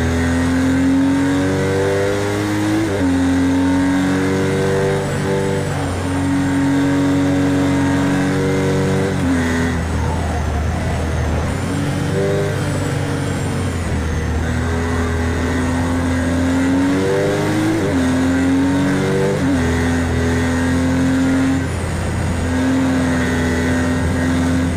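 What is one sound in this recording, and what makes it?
A racing car engine roars loudly, revving up through the gears and dropping in pitch at each shift.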